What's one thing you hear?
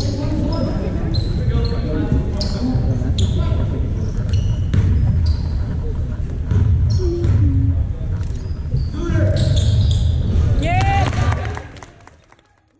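A crowd chatters in a large echoing gym.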